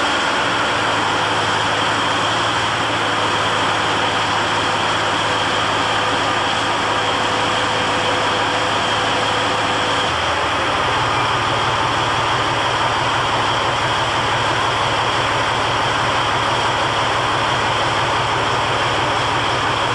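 Tank tracks clank and grind over a metal floor.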